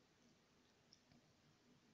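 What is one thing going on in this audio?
A small brush strokes lightly across paper.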